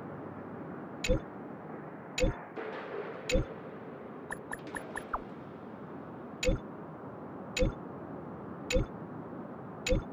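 Soft message pops sound one after another at a steady pace.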